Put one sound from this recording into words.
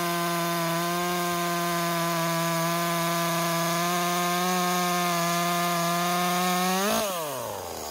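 A chainsaw engine roars steadily while cutting into a log.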